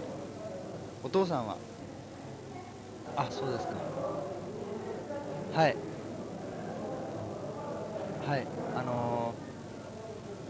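A young man speaks quietly into a telephone nearby.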